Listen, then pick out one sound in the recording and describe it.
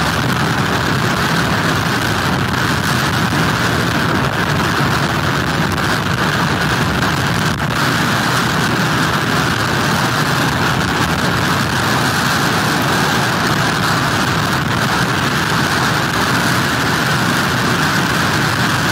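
Strong wind roars steadily outdoors.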